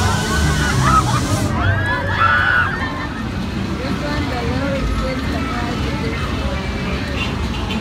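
A ride whirs and rumbles as it spins.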